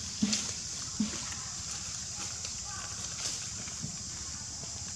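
Monkeys rustle through dry leaves on the ground.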